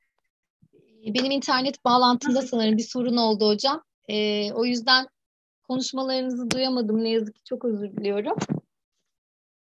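A young woman speaks steadily over an online call.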